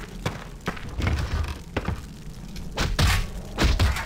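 A wooden chest lid creaks open.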